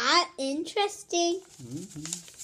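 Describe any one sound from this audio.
A boy speaks excitedly close by.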